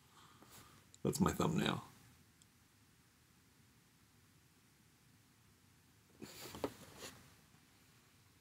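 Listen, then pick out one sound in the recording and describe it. A plastic toy package crinkles and rattles as it is handled.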